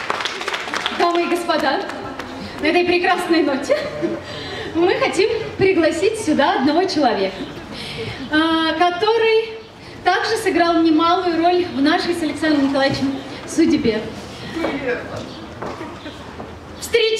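A woman sings through a microphone.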